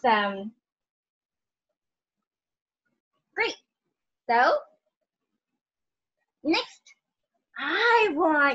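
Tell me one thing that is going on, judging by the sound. A young girl speaks in short, lively bursts over an online call.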